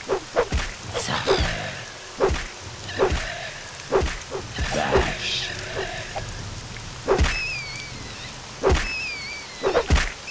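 A winged creature screeches.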